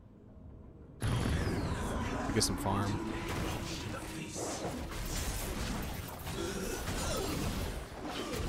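Video game combat effects whoosh and clash.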